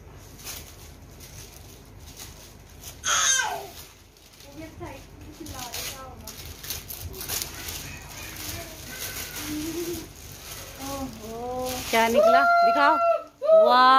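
Paper crinkles and tears as a gift is unwrapped.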